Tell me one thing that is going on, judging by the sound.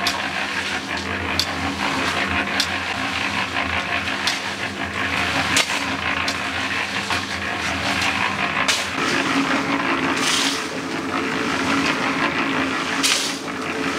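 A concrete mixer drum rumbles and churns steadily.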